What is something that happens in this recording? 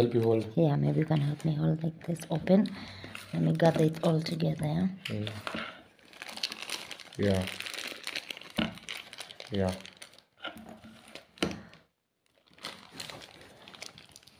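Foil crinkles and rustles.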